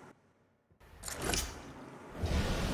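A heavy metal lever clunks into place.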